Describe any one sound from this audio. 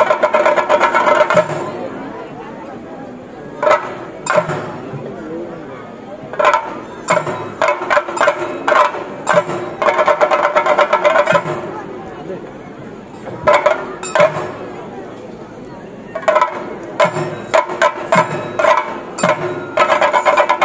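Drums beat loudly in fast bursts, with quieter lulls between.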